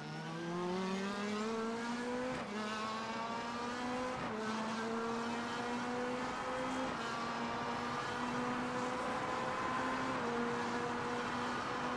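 A racing car engine roars and revs up steadily through the gears.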